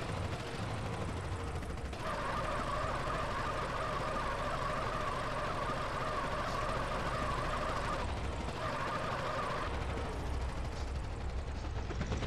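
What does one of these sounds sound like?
A heavy truck engine rumbles and revs.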